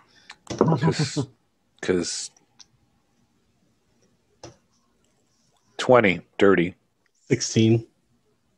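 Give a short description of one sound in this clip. A man speaks with animation over an online call, with pauses between short phrases.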